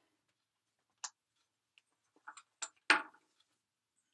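Small items click and tap as they are handled.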